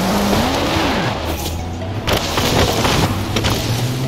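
Stones and a wall crash and scatter as a car smashes through them.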